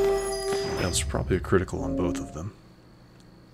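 Magical spell effects sparkle and chime.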